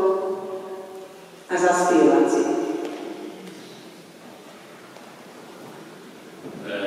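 A large mixed choir sings sustained chords that ring and echo through a large hall.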